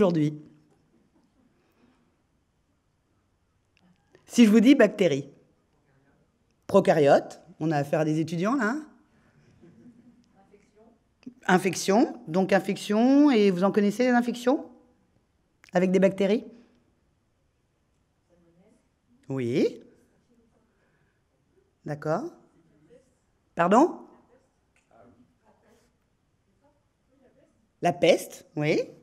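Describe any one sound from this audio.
A woman speaks calmly with animation through a microphone, in a large echoing hall.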